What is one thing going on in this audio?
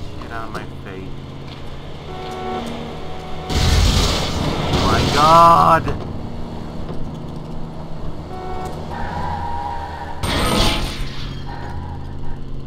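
A car engine hums steadily and revs as the car speeds along.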